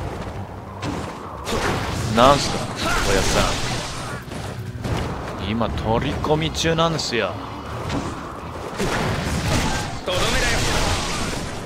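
Blades slash and strike enemies in quick bursts.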